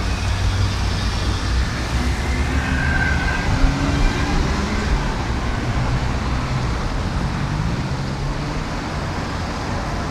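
Traffic hums steadily outdoors in the distance.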